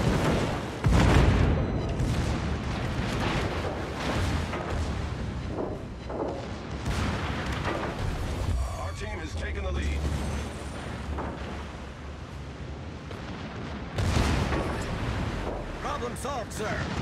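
Heavy naval guns fire with deep, booming blasts.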